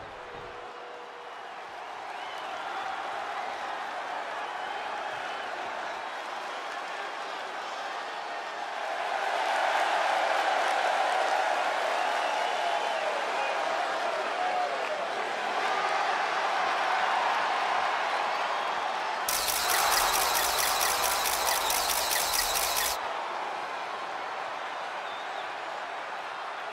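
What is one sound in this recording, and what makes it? A large crowd cheers and roars in a big arena, growing louder.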